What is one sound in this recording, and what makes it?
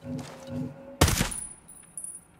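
A suppressed rifle fires a single sharp shot.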